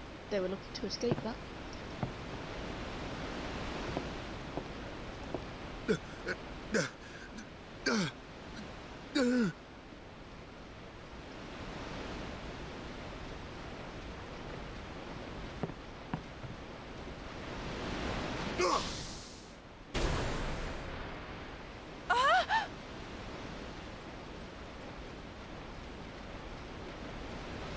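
Sea waves wash steadily against a boat.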